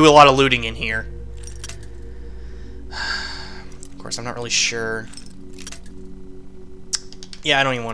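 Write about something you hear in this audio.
A metal lock pick scrapes and clicks inside a lock.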